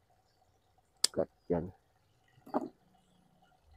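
Pruning shears snip through thin twigs a few times.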